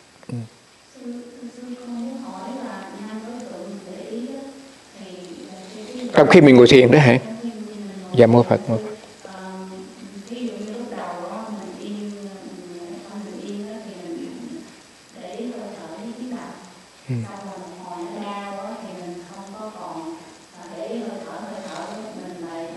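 An elderly man speaks calmly and slowly into a close microphone.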